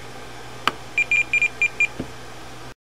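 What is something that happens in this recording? An electronic device beeps several times in quick succession.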